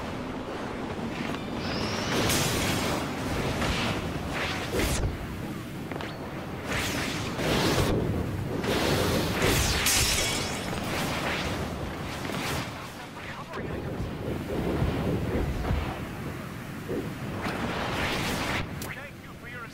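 Game energy blasts whoosh and crackle.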